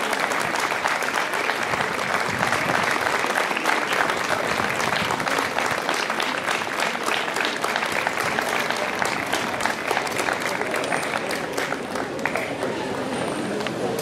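A wind band plays a lively tune outdoors, with brass and woodwinds.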